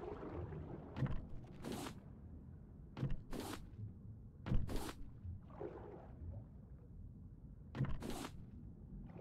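A metal hook strikes clay with sharp, repeated knocks.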